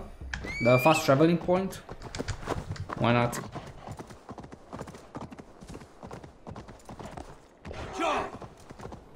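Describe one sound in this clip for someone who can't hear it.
Hooves crunch steadily through snow.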